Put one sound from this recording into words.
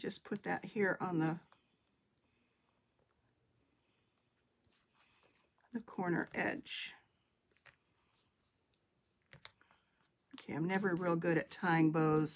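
Paper rustles softly under hands.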